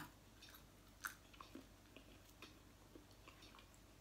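A middle-aged woman chews crunchy food.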